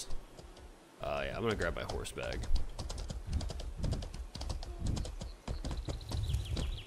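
Horse hooves clop on stone paving.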